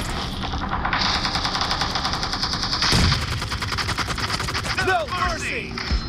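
Automatic rifle fire rattles in rapid bursts in a video game.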